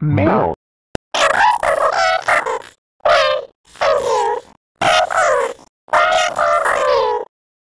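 A high-pitched, distorted cartoon voice speaks in short bursts.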